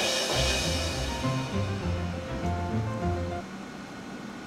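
Game music plays with a bouncy tune.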